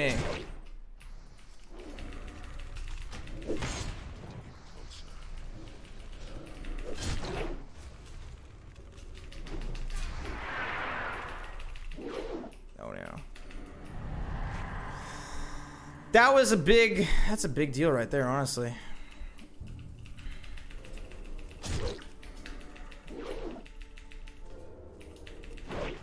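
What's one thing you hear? Game spell and combat effects whoosh and crackle.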